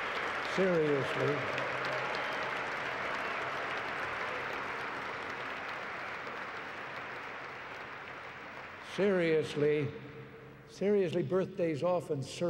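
An elderly man speaks through a microphone with good humour, in a large echoing hall.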